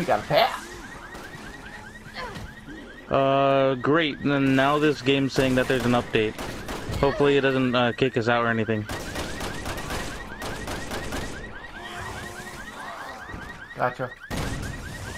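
A shotgun fires with loud, sharp blasts.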